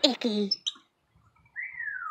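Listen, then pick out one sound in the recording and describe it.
A tufted capuchin monkey calls.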